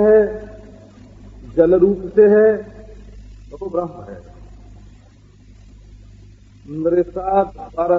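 An elderly man speaks slowly and calmly, heard through an old, muffled recording.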